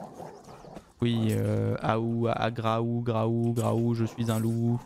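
A wolf snarls and growls.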